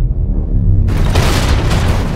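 A heavy truck engine rumbles.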